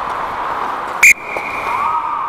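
A hockey stick smacks a puck sharply.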